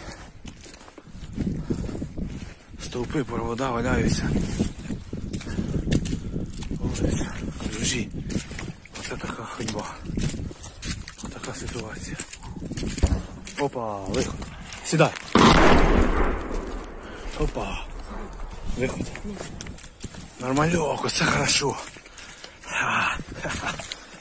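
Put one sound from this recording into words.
Footsteps squelch through mud.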